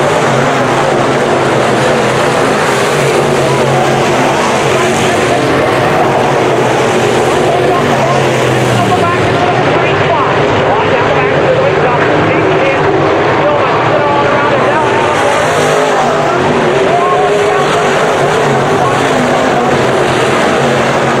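Race car engines roar loudly and continuously.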